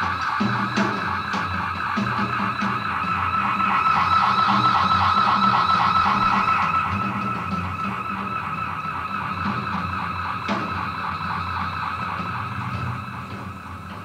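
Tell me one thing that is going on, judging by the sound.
Drums are played with loud, rapid beats.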